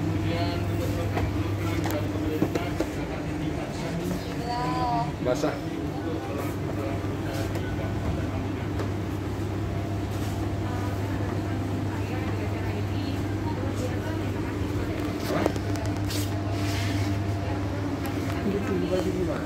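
Refrigerators hum steadily.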